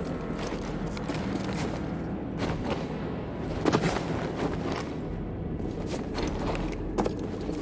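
Footsteps scrape and thud on rock.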